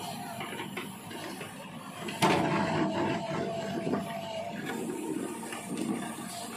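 An excavator bucket scrapes and drags through loose soil.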